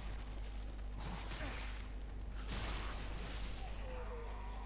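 Metal weapons clash and swish in a fight.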